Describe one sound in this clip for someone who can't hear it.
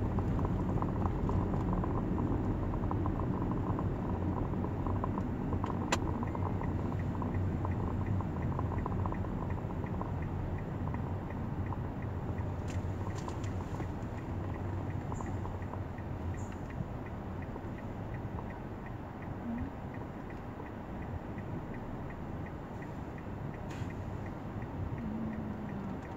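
A car engine hums steadily from inside the cabin as the car drives along.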